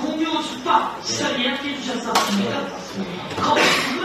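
A middle-aged woman answers into a microphone.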